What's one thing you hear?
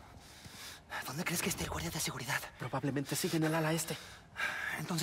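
A second young man answers with animation.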